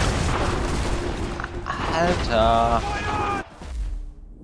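Footsteps crunch quickly over dry dirt.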